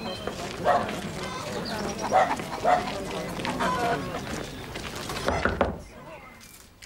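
Several people walk over cobblestones.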